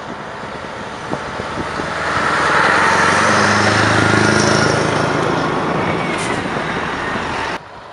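Heavy truck engines rumble loudly as trucks drive past close by.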